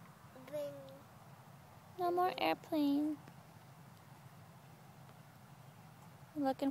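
A toddler babbles in a high voice close by.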